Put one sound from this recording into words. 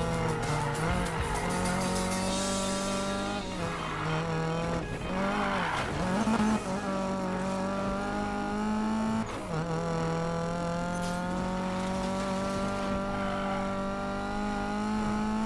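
A car engine roars steadily, rising and falling in pitch as it shifts gears.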